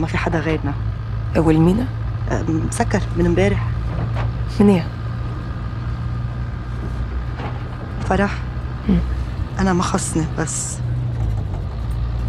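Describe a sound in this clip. A second woman answers quietly.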